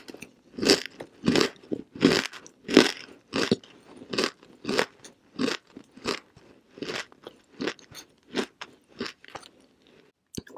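A young woman makes rhythmic kissing and lip-smacking sounds close to a microphone.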